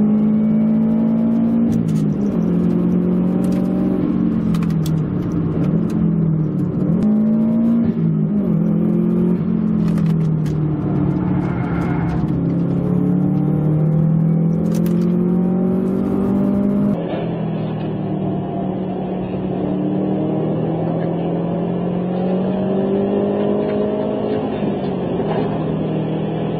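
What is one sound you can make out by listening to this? A car engine roars loudly, revving up and down.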